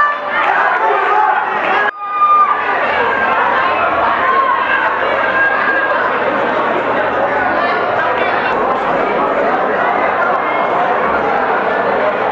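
A large crowd cheers and chatters loudly around the ring.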